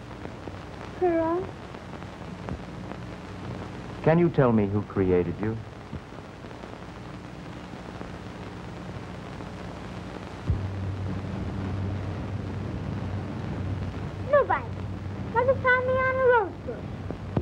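A young girl speaks in a high voice.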